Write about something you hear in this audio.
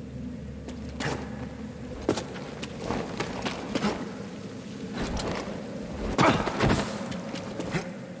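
Footsteps scrape and shuffle over rock.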